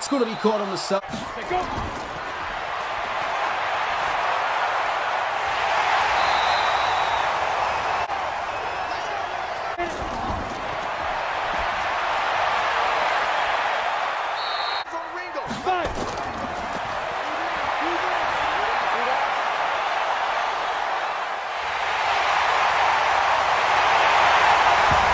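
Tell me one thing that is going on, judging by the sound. A large crowd cheers and roars in a stadium.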